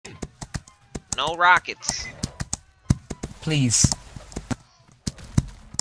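Horse hooves pound steadily at a gallop.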